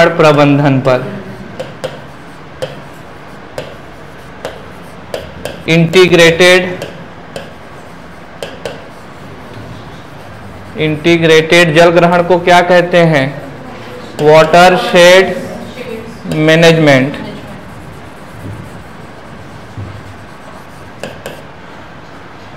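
A marker taps and squeaks on a board.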